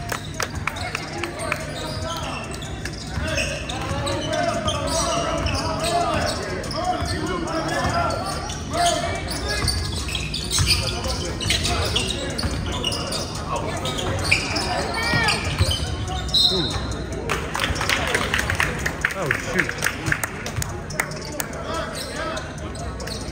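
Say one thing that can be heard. Sneakers squeak sharply on the gym floor.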